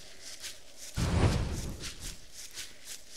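A fire flares up with a sudden low whoosh.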